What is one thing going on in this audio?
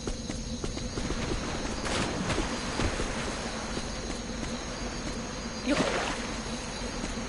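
A game character's footsteps patter on grass.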